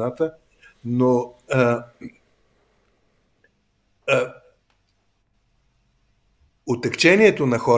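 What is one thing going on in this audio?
An elderly man speaks calmly over an online call, in short bursts with pauses.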